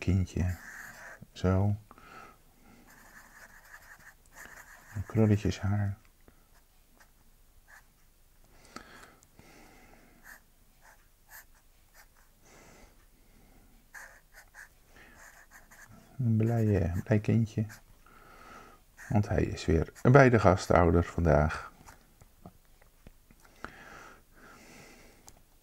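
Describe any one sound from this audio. A felt-tip marker scratches and squeaks on paper.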